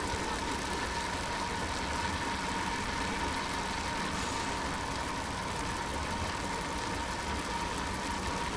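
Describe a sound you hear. A pack of racing bicycles rolls along an asphalt road.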